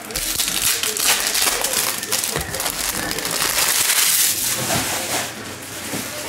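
Foil card wrappers crinkle and rustle close by.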